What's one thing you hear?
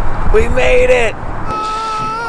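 A man shouts out excitedly.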